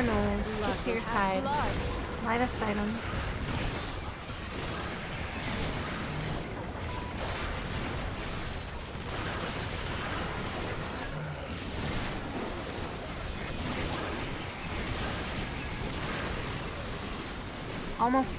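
Monsters screech and growl as they are hit.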